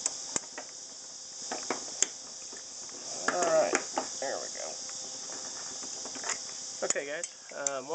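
A wrench clicks and scrapes against a metal nut.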